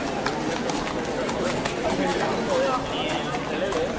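Horse hooves clop on a paved street.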